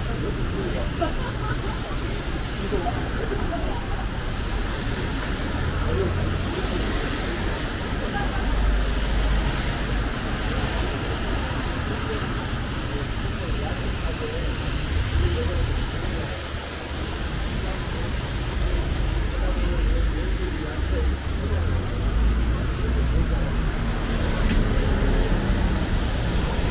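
Footsteps tap on a wet pavement outdoors.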